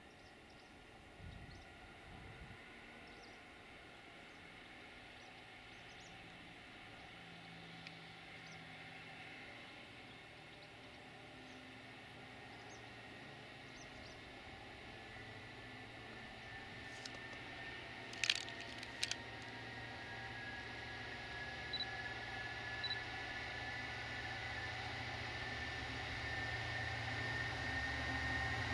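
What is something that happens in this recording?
Freight wagons clatter over the rails.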